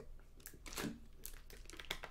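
A young man gulps water from a plastic bottle.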